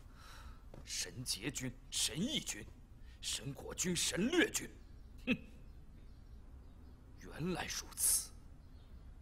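A young man speaks forcefully and with animation, close by.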